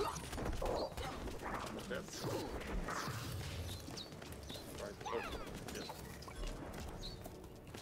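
Fireballs whoosh and burst with fiery blasts.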